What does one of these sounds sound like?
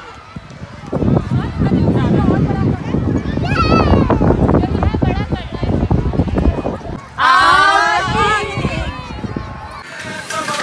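Children shout and squeal while playing outdoors.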